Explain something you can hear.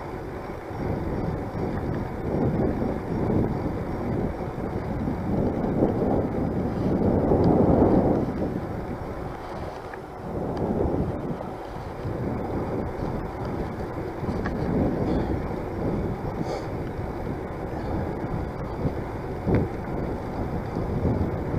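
Bicycle tyres roll over a paved path.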